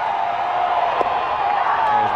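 A pitched ball smacks into a catcher's mitt.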